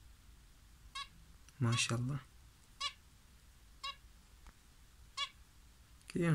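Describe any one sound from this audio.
A small bird peeps in short, thin calls.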